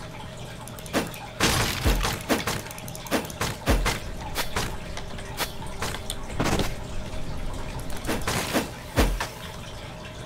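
Sword slashes whoosh and strike in quick bursts.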